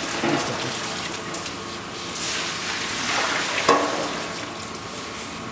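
Thick rice mash pours from a steel pail into a metal pot.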